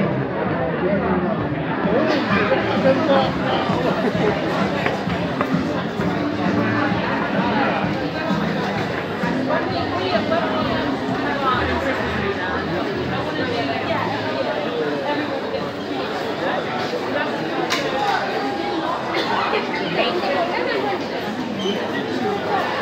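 A crowd of shoppers chatters in a large indoor hall.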